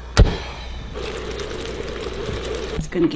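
Liquid bubbles at a boil.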